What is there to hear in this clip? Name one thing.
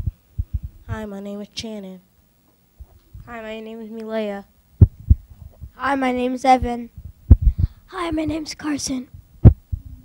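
Children take turns speaking brightly into a microphone, one short line each.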